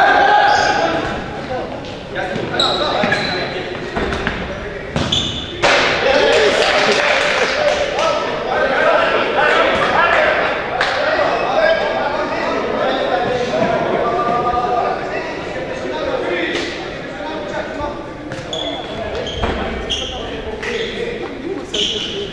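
Men shout to each other across an echoing hall.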